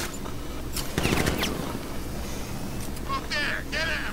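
A grappling line fires with a sharp whoosh.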